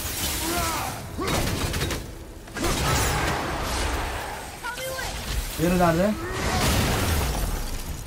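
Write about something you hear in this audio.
A creature roars in a video game.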